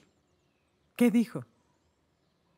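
A woman speaks quietly nearby.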